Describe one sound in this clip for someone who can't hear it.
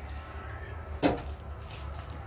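A glass clinks against a tray.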